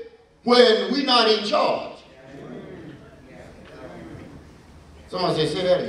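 A man preaches passionately into a microphone, his voice filling a reverberant hall.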